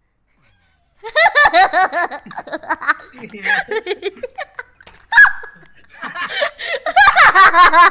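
Young men and women laugh loudly and excitedly over an online call.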